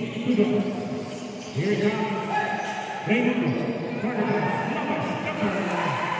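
Sneakers squeak sharply on a court in an echoing hall.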